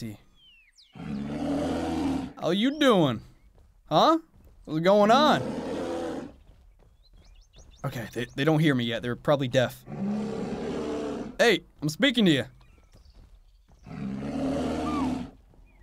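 A bear growls and roars loudly.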